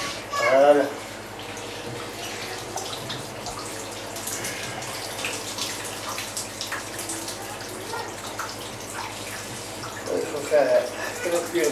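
Hands squeeze and press soft wet curds in a tub.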